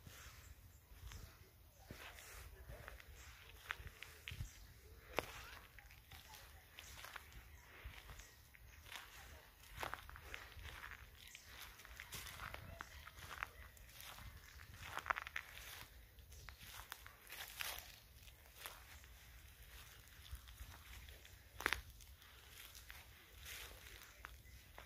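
Footsteps crunch on dry fallen leaves.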